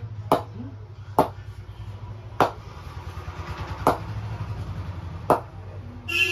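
A wooden cricket bat knocks sharply against a surface, several times.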